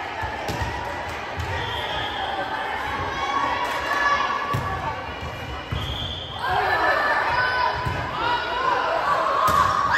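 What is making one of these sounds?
Players' shoes squeak on the gym floor.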